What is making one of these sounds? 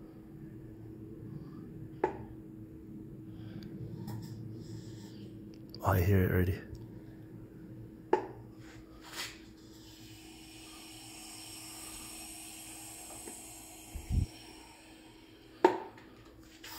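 A hand pump hisses as its handle is worked up and down.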